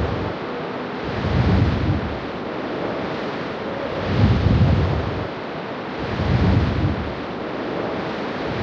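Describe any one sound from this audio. Waves wash steadily against a ship's hull.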